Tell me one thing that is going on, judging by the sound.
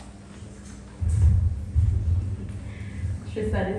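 A woman speaks slowly through a microphone and loudspeakers.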